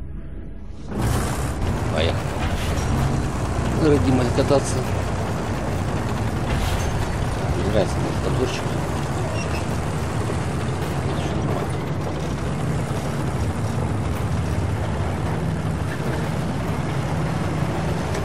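A vehicle engine rumbles steadily while driving over rough ground.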